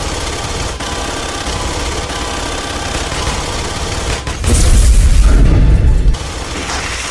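A cutting torch roars and crackles as it burns through metal.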